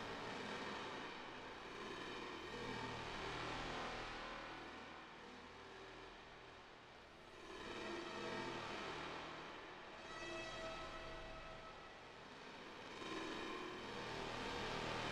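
A synthesizer pad plays slow, swelling sustained chords.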